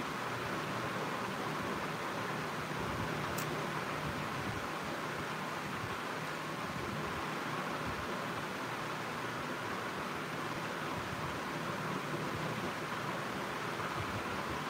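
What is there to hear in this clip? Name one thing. A young woman talks calmly, close to the microphone.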